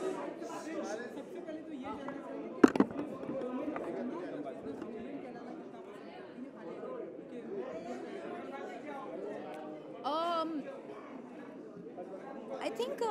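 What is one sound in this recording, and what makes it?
A young woman speaks calmly into close microphones.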